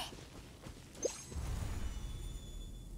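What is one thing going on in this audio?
A soft chime rings.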